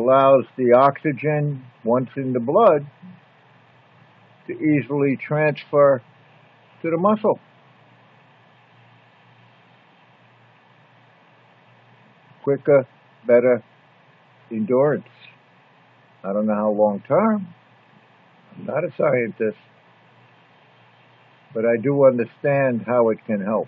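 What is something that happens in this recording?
An elderly man speaks calmly and slowly, close to the microphone, with long pauses.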